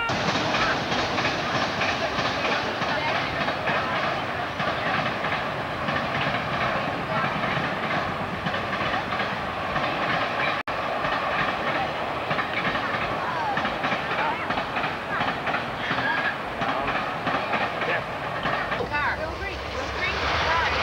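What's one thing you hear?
A middle-aged woman talks and laughs close by, outdoors.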